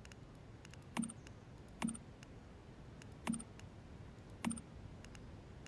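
Short menu clicks sound a few times.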